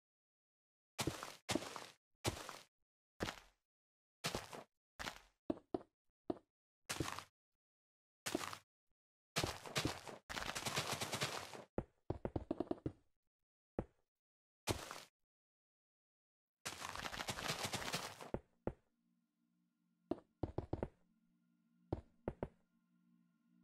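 Blocks land with short, sharp thuds as they are placed.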